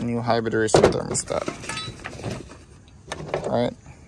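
Cardboard boxes tap down onto a ridged metal tailgate.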